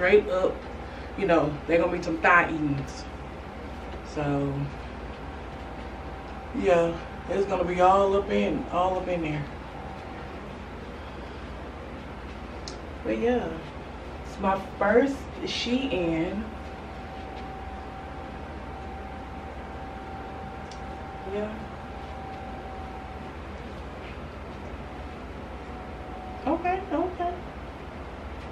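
A woman talks casually and close by, in short bursts with pauses.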